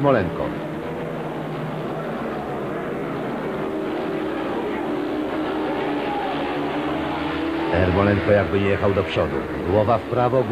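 Motorcycle engines roar and whine as they race past.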